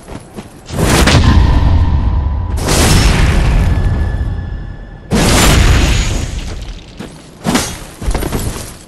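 A metal weapon swings and clangs.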